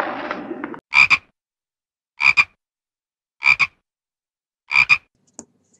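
A frog croaks.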